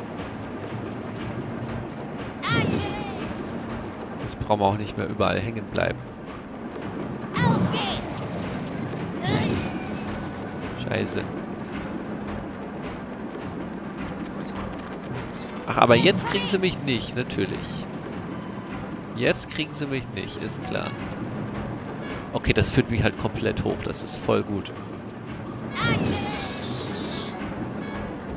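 Metal wheels rattle and grind along a rail.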